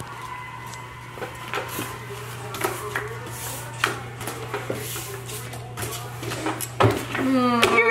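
Playing cards are dealt and slapped onto a wooden table.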